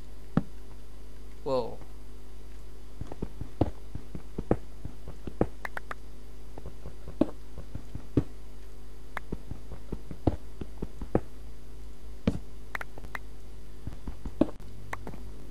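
A pickaxe chips at stone with sharp, repeated knocks.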